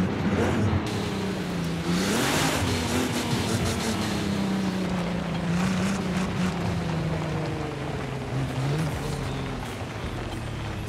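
Tyres crunch and skid over loose dirt and gravel.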